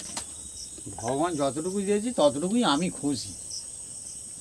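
A woman speaks briefly and animatedly nearby.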